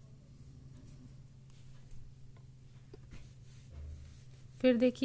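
Knitting needles click softly against each other.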